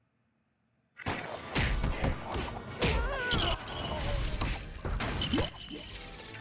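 Small plastic bricks burst apart and clatter with a crash.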